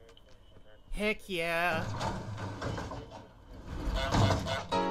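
A garage door rattles open.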